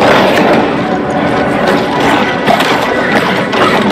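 A muffled explosion booms underwater.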